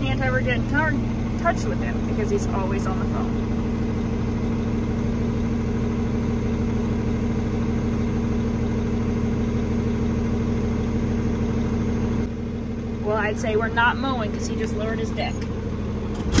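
A tractor engine hums steadily from inside the cab.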